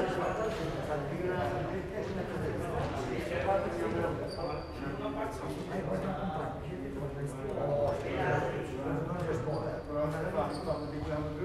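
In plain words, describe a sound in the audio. Several men talk with one another at a distance in a large echoing hall.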